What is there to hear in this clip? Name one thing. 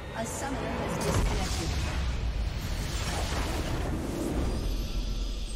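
A game's crystal structure shatters with a loud magical blast.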